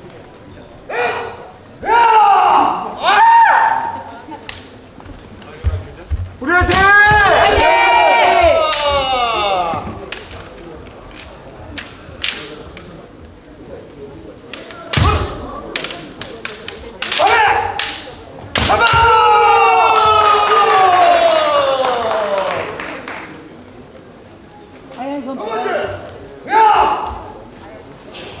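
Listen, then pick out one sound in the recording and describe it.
Fighters shout loud, drawn-out cries that echo through a large hall.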